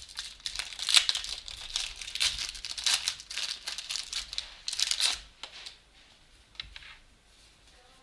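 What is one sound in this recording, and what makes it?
Trading cards rustle and snap as hands shuffle them close by.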